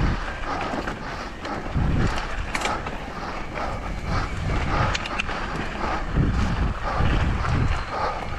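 Wind rushes past, rumbling low and close.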